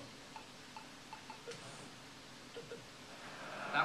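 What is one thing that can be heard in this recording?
Short menu beeps click several times.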